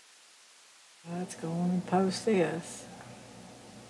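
An elderly woman speaks calmly and close into a microphone.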